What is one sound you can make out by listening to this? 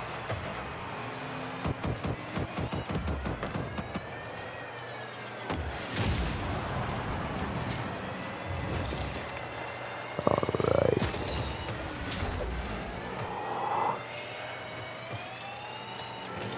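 A rocket boost roars in short bursts.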